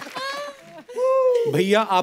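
Women laugh.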